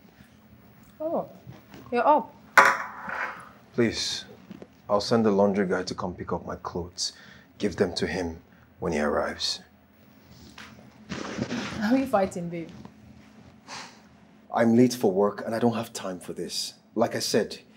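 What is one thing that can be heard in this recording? A young man speaks with strong emotion, close by.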